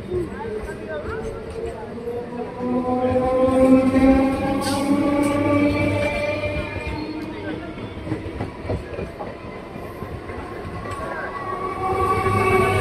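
Steel train wheels squeal on the rails.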